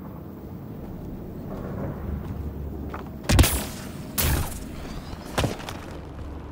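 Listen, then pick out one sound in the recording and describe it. Heavy footsteps thud on rocky ground.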